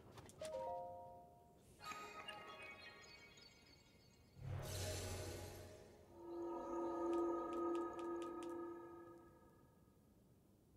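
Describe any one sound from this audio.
A magical chime rings and shimmers.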